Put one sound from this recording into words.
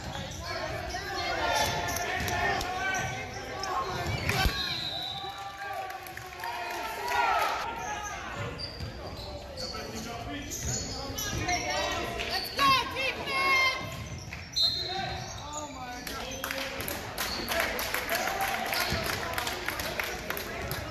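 Players and spectators shout and call out across the gym.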